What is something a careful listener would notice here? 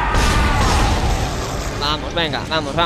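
A heavy gun fires with a deep, rumbling boom.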